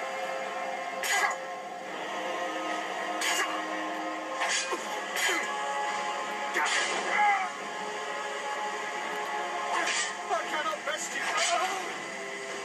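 Metal blades clash and ring in a fight.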